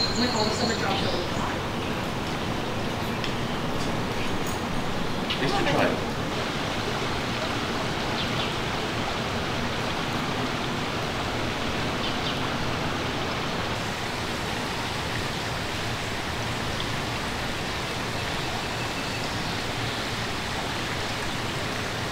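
Shallow water trickles and flows steadily over stones.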